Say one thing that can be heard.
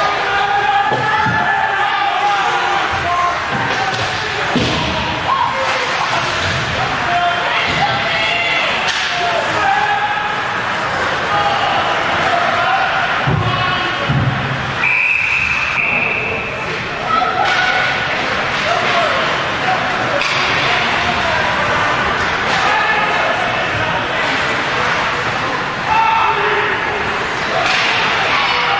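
A crowd cheers in a large echoing rink.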